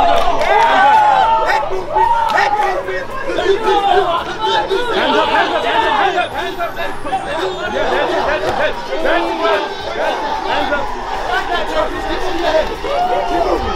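Young men shout and cheer nearby outdoors.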